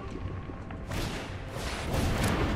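A fiery magical burst whooshes.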